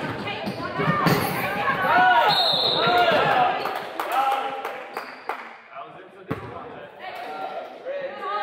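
Spectators cheer and call out from the sideline.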